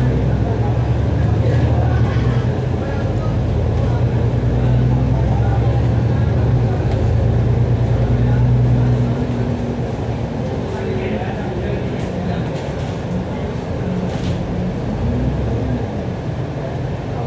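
A diesel double-decker bus engine drones as the bus pulls along, heard from inside.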